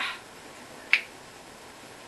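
A hand claps sharply against another hand.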